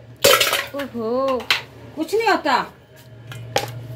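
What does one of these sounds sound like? Ice cubes clatter into a blender jug.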